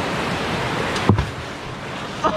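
A rock splashes heavily into the water.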